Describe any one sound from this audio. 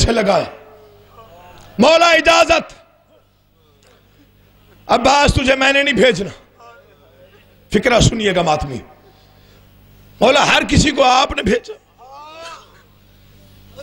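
A man chants emotionally in loud bursts through a microphone and loudspeakers, with pauses between phrases.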